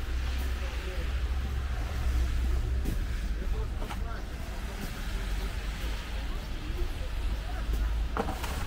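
Footsteps crunch on a gritty, snowy pavement.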